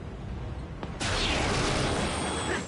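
An electric blast crackles and hisses.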